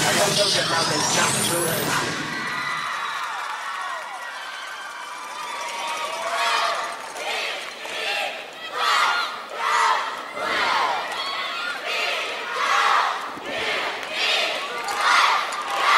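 A large crowd cheers and screams in a big echoing hall.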